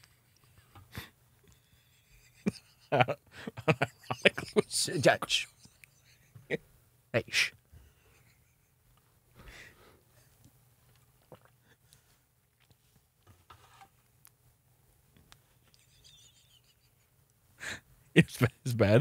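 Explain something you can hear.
A second young man talks and laughs into a microphone nearby.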